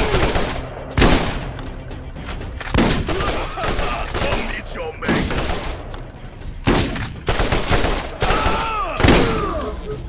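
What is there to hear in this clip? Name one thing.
Rapid gunfire bursts crack loudly.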